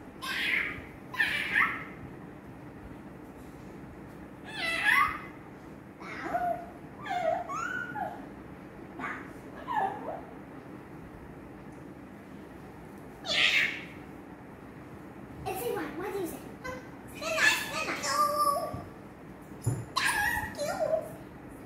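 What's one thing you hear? Young girls talk and squeal excitedly, close by.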